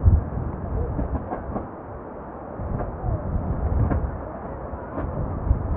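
A marching band's drums beat in a steady rhythm outdoors.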